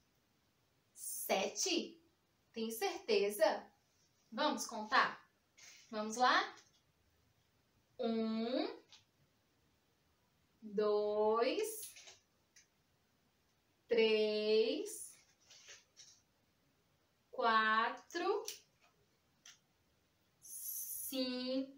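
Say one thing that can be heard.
A young woman speaks close by with animation, in short phrases with pauses.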